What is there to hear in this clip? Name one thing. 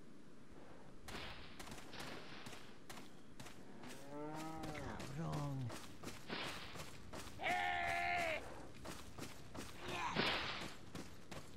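Footsteps crunch steadily over dry leaves and dirt.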